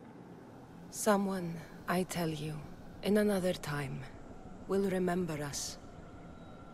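A young woman speaks softly and calmly, close by.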